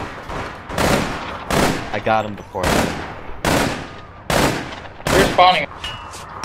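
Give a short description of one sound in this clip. A rifle fires loud single shots at a steady pace.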